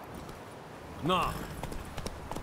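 A horse neighs.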